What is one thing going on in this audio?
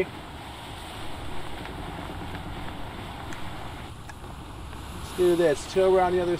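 Ocean waves surge and splash steadily.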